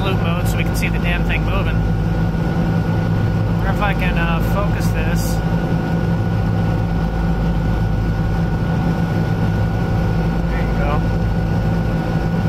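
A car engine drones loudly and steadily at high speed.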